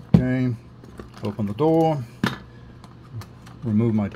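A small latch clicks and a plastic hatch snaps open.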